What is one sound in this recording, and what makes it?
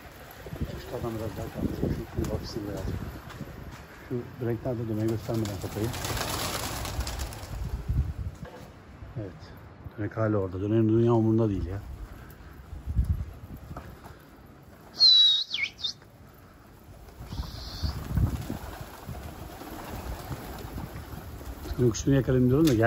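Pigeons coo nearby.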